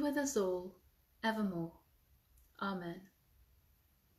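A woman speaks warmly and calmly, close to a microphone.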